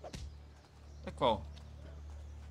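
A young man speaks casually into a microphone.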